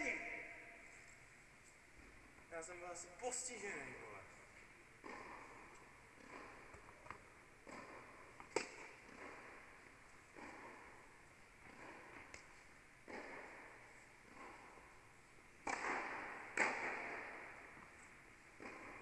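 Tennis balls are struck with rackets, their hits echoing in a large indoor hall.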